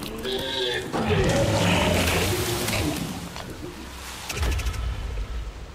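A magic spell whooshes and crackles.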